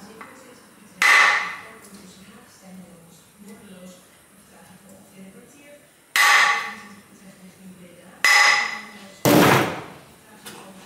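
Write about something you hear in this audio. A hammer strikes metal with loud ringing blows.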